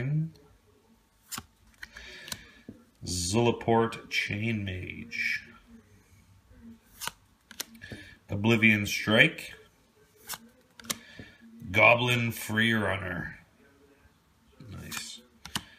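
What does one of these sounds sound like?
Playing cards slide and flick against each other close by.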